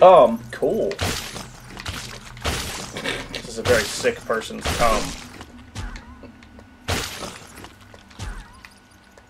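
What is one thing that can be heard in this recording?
An energy beam crackles and zaps in short bursts.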